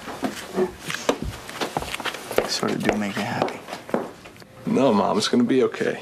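A young man speaks quietly and close by.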